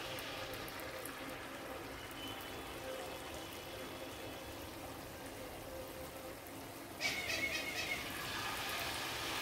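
Batter sizzles and crackles in hot oil, growing louder near the end.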